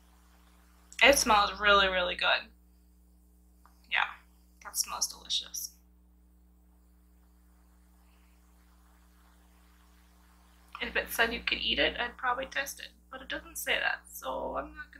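A young woman talks close by, in short bursts.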